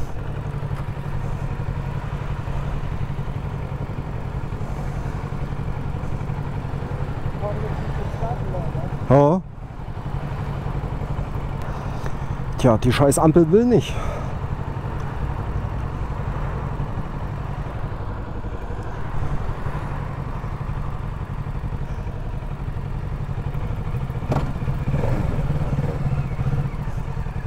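A motorcycle engine idles with a steady low rumble.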